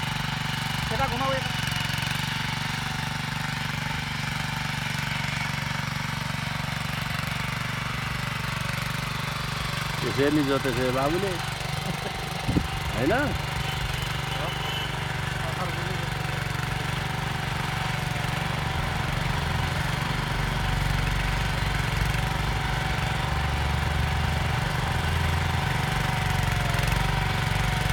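A small tiller engine chugs steadily close by.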